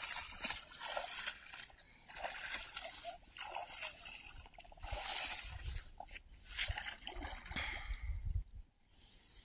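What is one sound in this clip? Water splashes and sloshes as a person wades through a shallow river.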